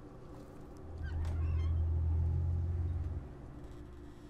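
A heavy wooden door creaks open with a low rumble.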